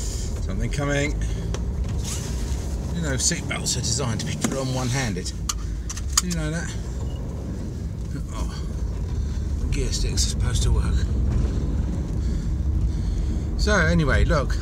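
A car engine hums steadily with road noise.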